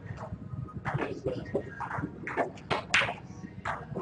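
A cue sharply strikes a snooker ball.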